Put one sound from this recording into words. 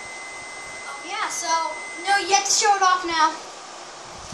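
A young child speaks excitedly nearby.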